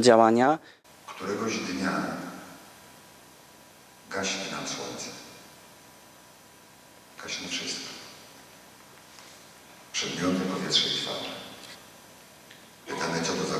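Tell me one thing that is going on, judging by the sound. An elderly man speaks with expression into a microphone, in phrases with pauses, in a large echoing hall.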